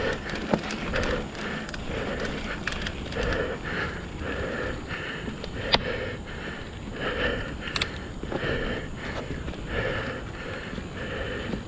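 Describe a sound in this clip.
Bicycle tyres roll and crunch over a dirt trail covered in dry leaves.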